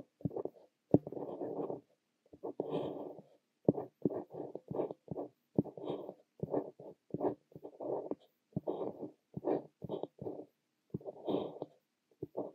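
A fountain pen nib scratches softly across paper in short strokes, heard up close.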